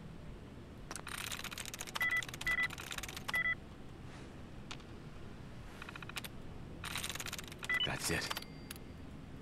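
Keys clatter rapidly on a computer keyboard.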